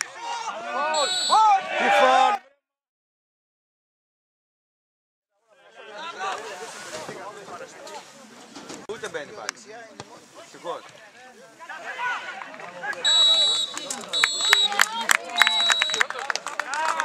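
A referee's whistle blows in short, sharp blasts.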